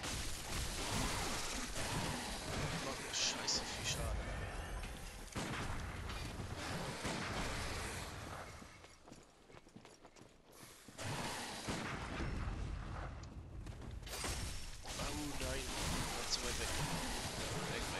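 A blade slashes into flesh with wet, heavy thuds.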